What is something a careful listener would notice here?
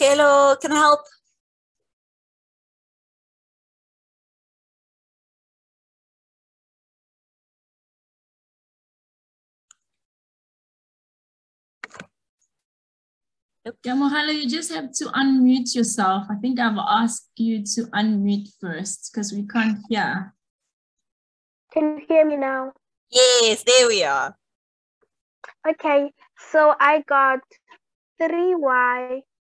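A woman explains calmly through a computer microphone, with pauses.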